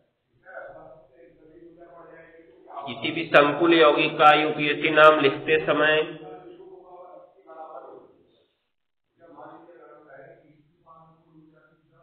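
A man speaks calmly close by, now and then raising his voice.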